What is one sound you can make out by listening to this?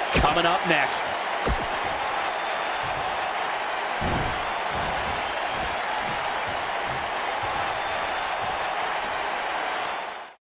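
A large arena crowd cheers and roars steadily.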